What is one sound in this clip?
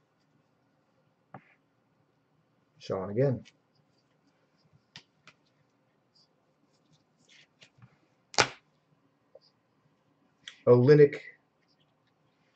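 Card packs rustle and tap as hands handle them.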